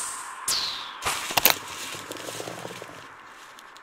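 A wooden crate shatters with a crash.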